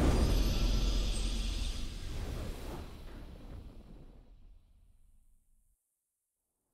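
A triumphant game fanfare rings out and slowly fades away.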